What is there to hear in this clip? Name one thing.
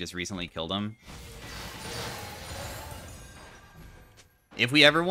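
Video game battle effects whoosh and clash.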